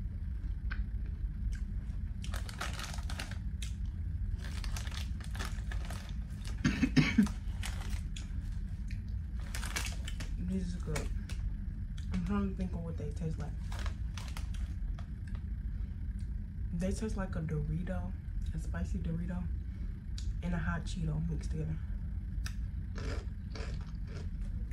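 A snack wrapper crinkles and rustles.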